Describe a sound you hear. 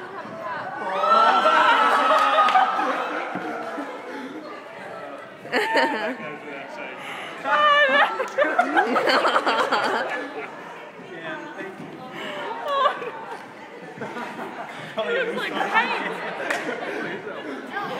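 A man laughs and shouts with excitement close by.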